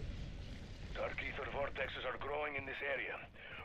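A man talks casually into a nearby microphone.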